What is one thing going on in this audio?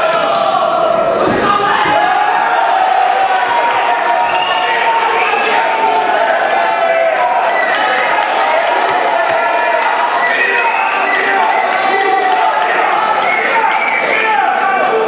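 A crowd of spectators talks and cheers loudly in an echoing hall.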